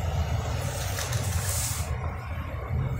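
A small toy car rolls down a ramp and clatters onto a hard surface.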